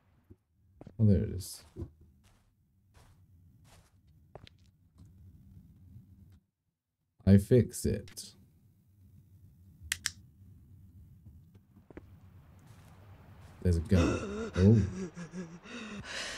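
A man speaks close to a microphone, with animation.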